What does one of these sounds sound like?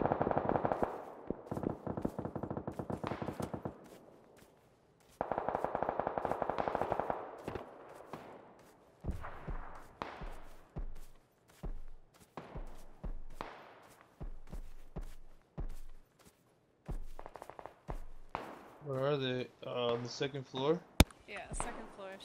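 Dry grass rustles in short bursts as a person crawls through it.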